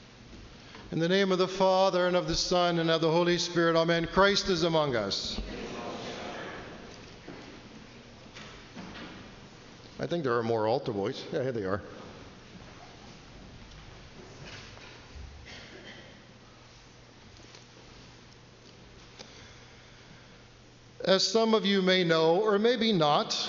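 A man chants in a steady, sung voice that echoes through a large hall.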